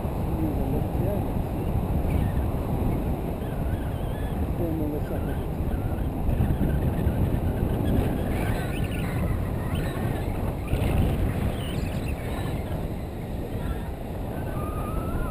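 Strong wind rushes and buffets loudly over a close microphone.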